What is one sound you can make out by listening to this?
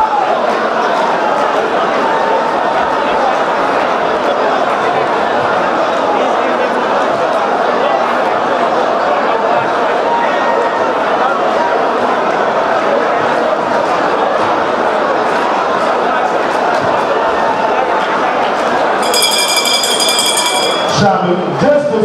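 A large crowd of women sings loudly together.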